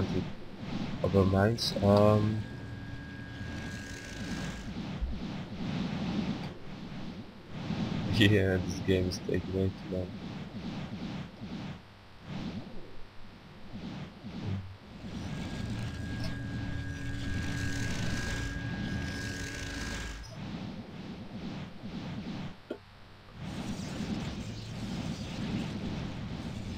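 Electric storms crackle and hiss amid battle noise.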